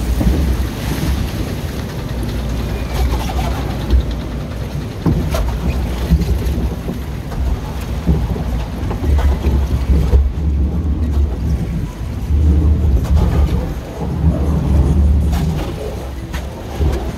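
Water rushes and laps around a log flume boat moving through a water channel.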